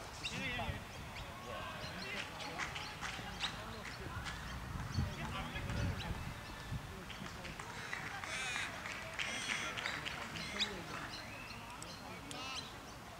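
Men call out and shout across an open field in the distance.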